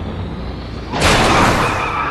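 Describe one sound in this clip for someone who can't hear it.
A heavy vehicle lands with a loud crash.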